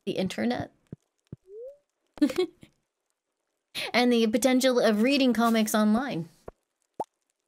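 A young woman talks with animation into a microphone close by.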